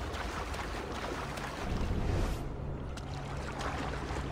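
Water splashes and churns.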